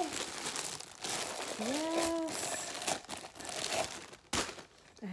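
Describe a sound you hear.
Plastic crinkles and rustles in hand.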